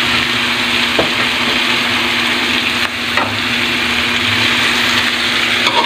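A metal spoon scrapes and taps against a pan.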